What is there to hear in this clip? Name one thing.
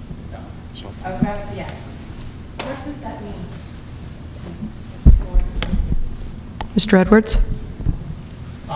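A woman speaks into a microphone in a large echoing room.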